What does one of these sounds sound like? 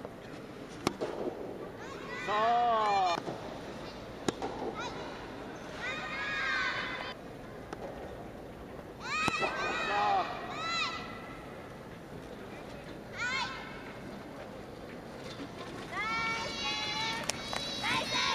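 Tennis rackets hit a ball with sharp pops.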